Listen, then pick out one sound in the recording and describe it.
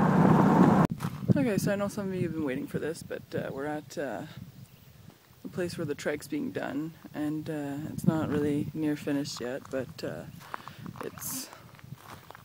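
A young woman talks calmly, close to the microphone.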